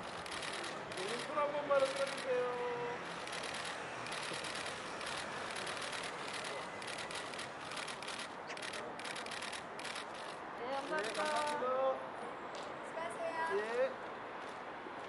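A middle-aged woman speaks briefly, close by.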